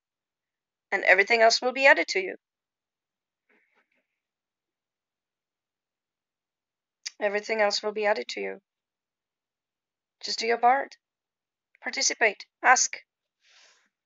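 A young woman speaks calmly and close to the microphone, in short phrases with pauses.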